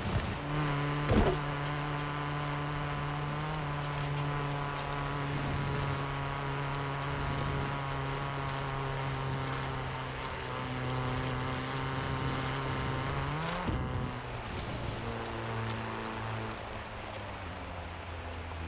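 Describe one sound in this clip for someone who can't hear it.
Tyres crunch and rumble over a dirt track.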